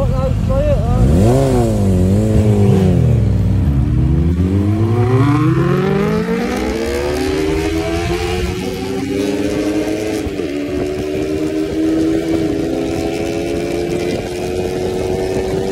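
A second motorcycle roars past and revs up as it speeds away.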